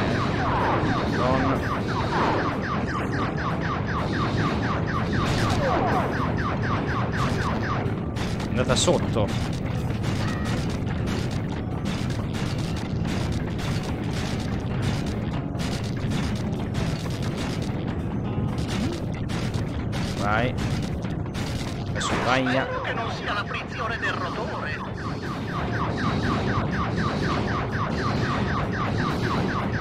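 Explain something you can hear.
Rapid gunfire rattles on and off.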